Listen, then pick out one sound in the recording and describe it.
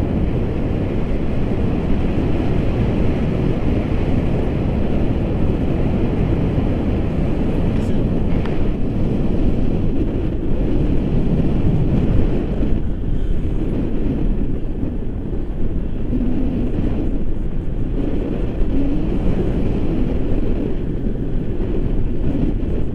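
Strong wind roars and buffets loudly against a microphone.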